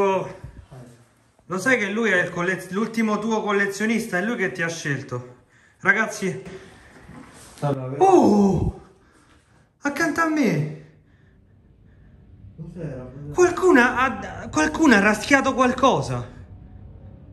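A man speaks in a hushed, tense voice close by.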